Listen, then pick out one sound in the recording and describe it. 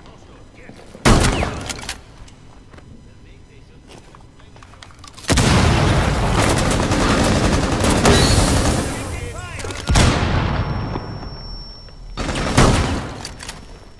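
Gunshots bang loudly.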